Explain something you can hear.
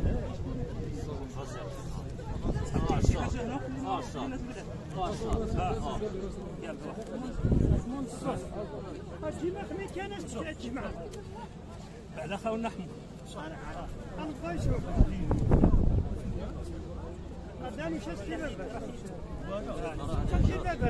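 Men talk outdoors, their voices overlapping close by.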